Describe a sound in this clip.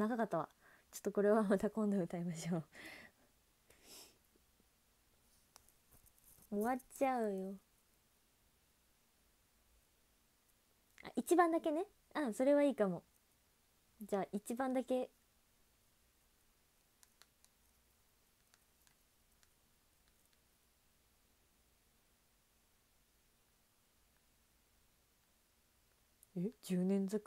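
A young woman talks with animation close to a microphone, in short bursts with pauses.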